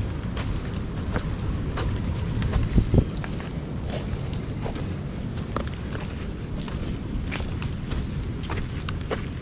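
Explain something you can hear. Footsteps crunch on a dirt path strewn with dry leaves.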